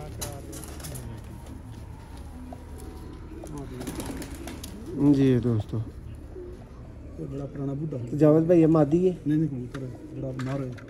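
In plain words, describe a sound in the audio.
A man speaks close by, with animation.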